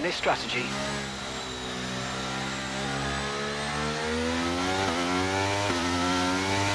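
A racing car engine roars and rises steadily in pitch.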